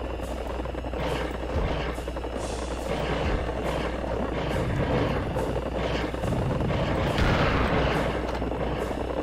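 A heavy gun fires in rapid, booming bursts.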